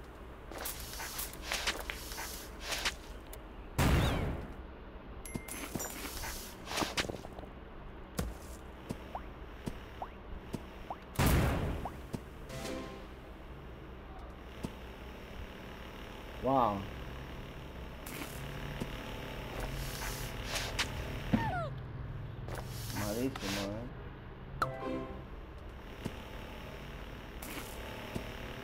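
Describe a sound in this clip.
Cartoon game sound effects pop, whoosh and jingle.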